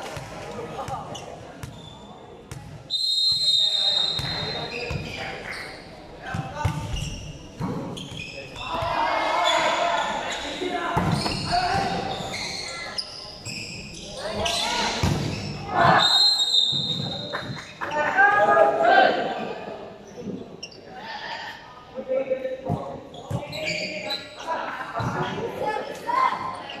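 A crowd of young people cheers and shouts in a large echoing hall.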